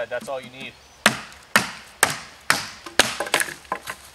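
A hammer knocks sharply on wood several times.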